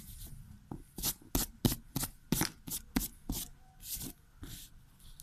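A hand rubs across a sheet of paper.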